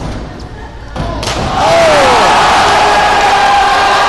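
A man splashes into water.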